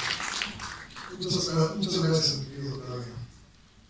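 A man speaks through a microphone over loudspeakers in a large hall.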